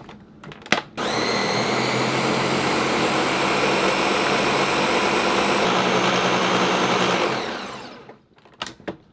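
A blender whirs loudly at high speed, then winds down.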